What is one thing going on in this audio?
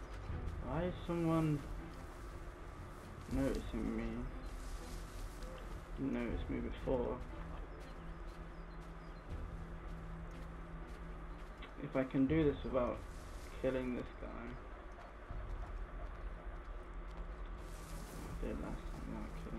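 Footsteps rustle through grass and thump on dirt.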